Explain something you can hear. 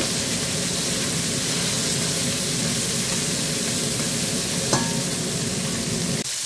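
Meat sizzles and crackles in a hot pot.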